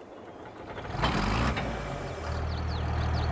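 A tractor engine starts up.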